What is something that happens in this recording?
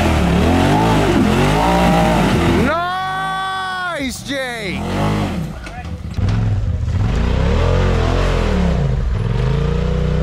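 Tyres grind and crunch over loose rocks and dirt.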